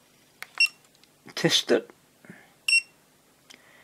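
A small electronic tester beeps.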